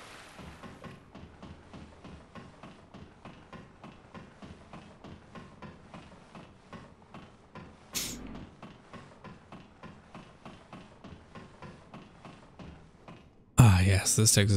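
Footsteps clank rhythmically on a metal ladder during a climb.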